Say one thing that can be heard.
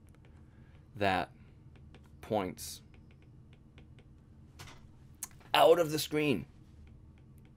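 A young man speaks calmly and haltingly into a close microphone.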